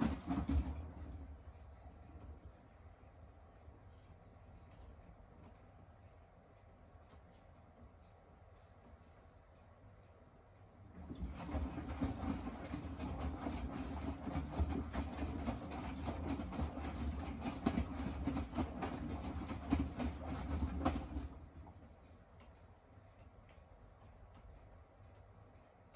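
A washing machine drum turns slowly with a low hum.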